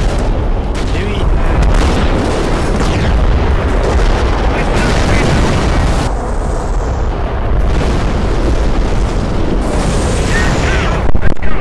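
Shells explode with deep booms.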